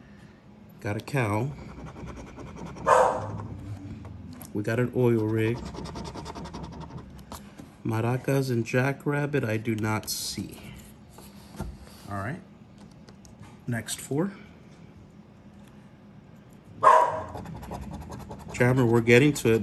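A coin scrapes across stiff card with short rasping strokes.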